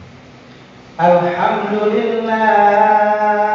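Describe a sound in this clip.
An elderly man begins chanting loudly into a microphone, heard through loudspeakers in an echoing hall.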